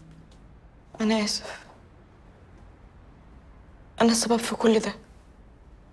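A middle-aged man speaks in short, low remarks close by.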